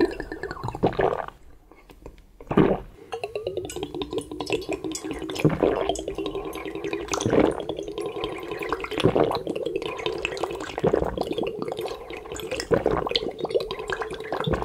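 A man slurps noisily through pursed lips.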